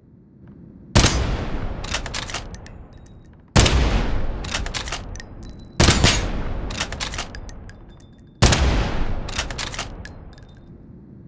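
A rifle fires loud single shots that echo and slowly fade.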